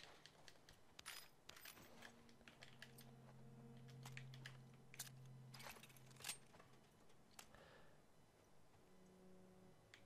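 Gear clicks and rattles as a pistol is handled.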